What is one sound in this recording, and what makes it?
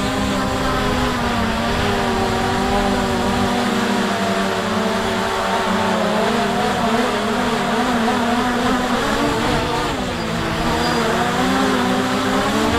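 Small propellers whir close by with a steady, wavering whine.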